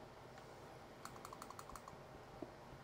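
A pickaxe chips at stone with a quick run of clicking taps.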